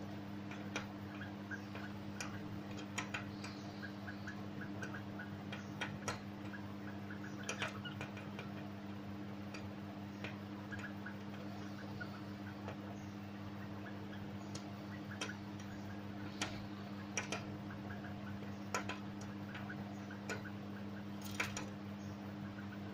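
A bird's feet tap and scratch on a window ledge.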